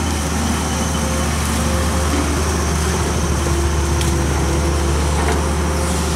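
Wet mud and rocks thud as an excavator bucket dumps them.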